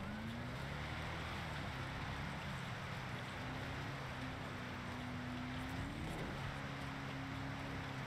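Tyres rumble and hiss over snowy road.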